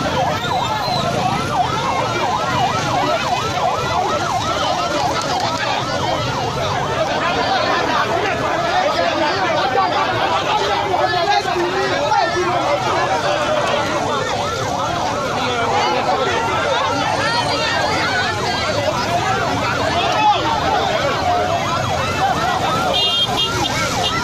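A crowd of men sings and chants outdoors.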